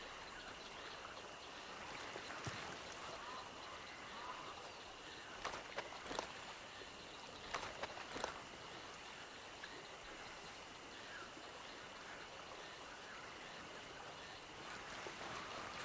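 Footsteps rustle softly through leafy undergrowth.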